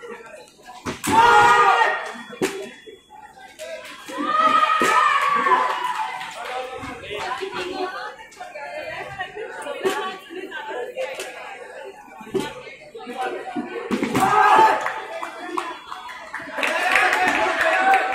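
Men shout and cheer loudly nearby, in bursts.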